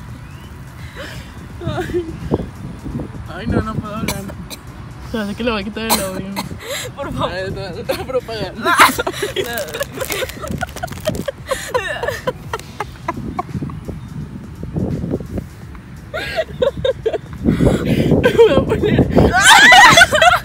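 Young women laugh and chatter nearby, outdoors.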